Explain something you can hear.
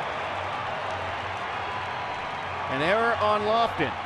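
Fans in a crowd clap their hands.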